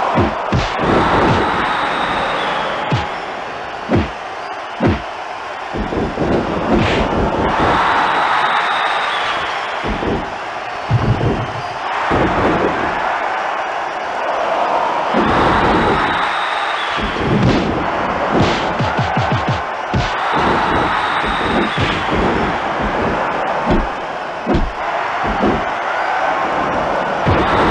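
Punches and slams thud sharply again and again.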